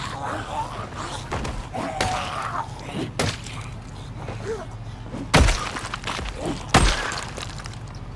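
Sharp hits and blows land in a game fight.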